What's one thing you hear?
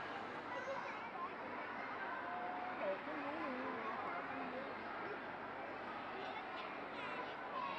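A crowd murmurs and chatters throughout a large echoing arena.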